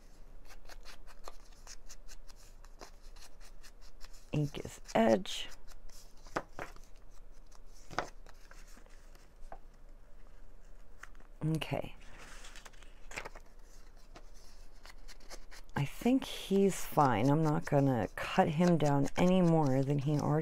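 A small tool dabs and scrapes against the edge of paper.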